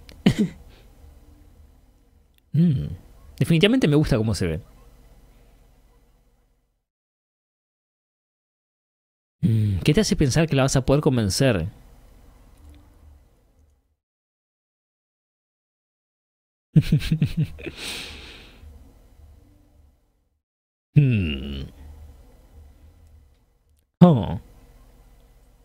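A young man speaks close to a microphone in short bursts with pauses.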